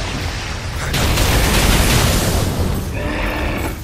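Fire roars and crackles in a burst of flames.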